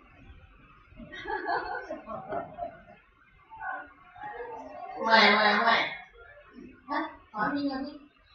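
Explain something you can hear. A toddler babbles and talks close by.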